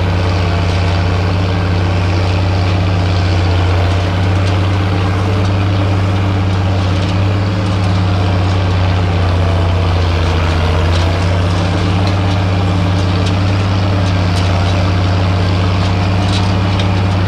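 A harrow scrapes and rattles through the soil.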